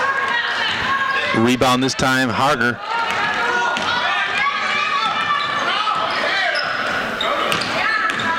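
A crowd cheers and shouts in a large echoing gym.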